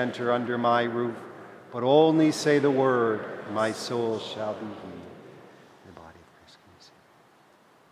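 An older man chants slowly into a microphone, echoing in a large hall.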